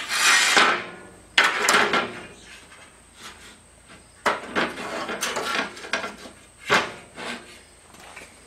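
Metal strips scrape and clank against a metal table.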